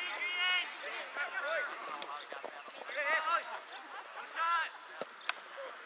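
Young men shout to each other across an open field outdoors.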